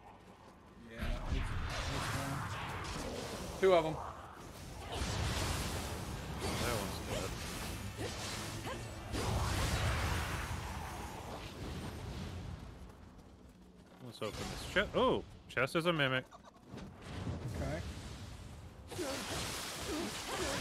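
Swords clash and slash.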